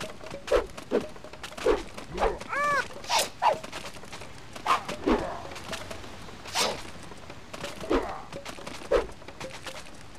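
Swords clash and strike in a melee.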